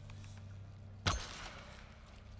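An arrow is loosed from a bow with a sharp snap.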